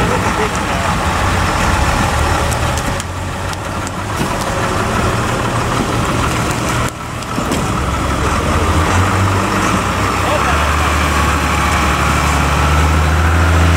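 Branches and dry ground crunch under an off-road truck's heavy tyres.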